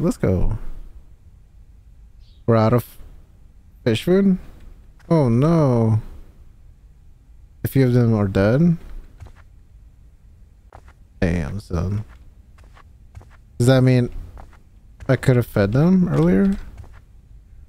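A young man talks animatedly into a close microphone, in short bursts.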